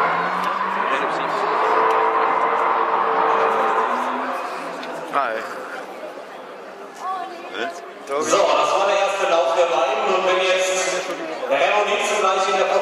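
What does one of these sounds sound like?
Racing car engines roar and rev hard in the distance.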